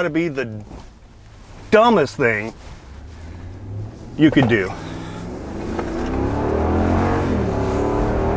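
A car engine hums and grows louder as the car speeds up.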